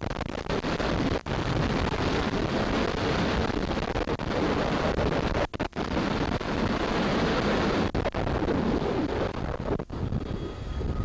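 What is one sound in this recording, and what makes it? Strong wind roars across the microphone outdoors.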